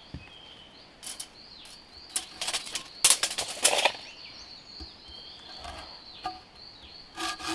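A blade chops and scrapes at a wooden log in sharp bursts.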